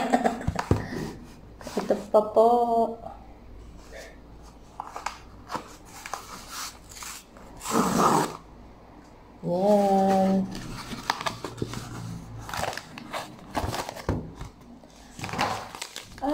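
A cardboard envelope rustles and scrapes as it is handled.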